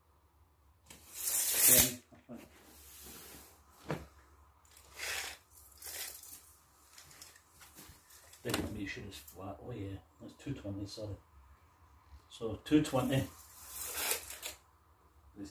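A sleeping bag rustles as it is handled.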